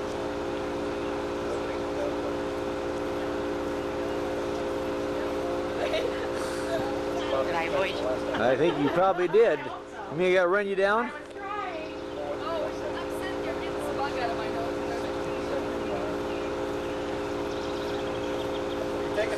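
Men and children chatter faintly in the background outdoors.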